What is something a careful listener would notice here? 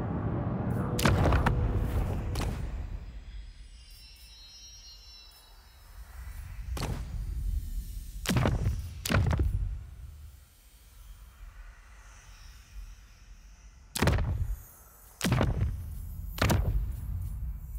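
Menu buttons click with short sharp sounds.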